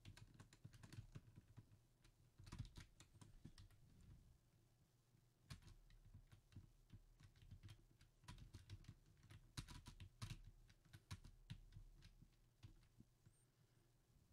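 Track pieces click into place in quick bursts.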